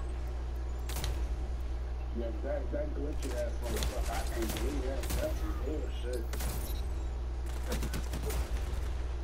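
A rifle fires sharp shots in quick bursts.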